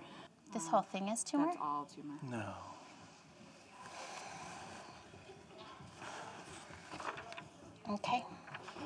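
A woman speaks quietly and gently close by.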